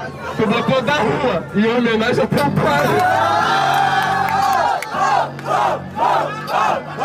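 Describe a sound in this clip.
A young man raps fast and loudly through a microphone.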